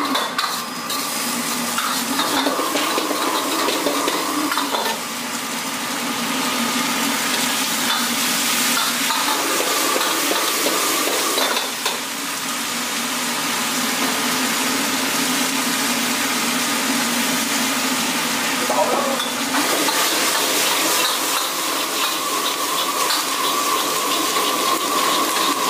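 A powerful gas burner roars steadily.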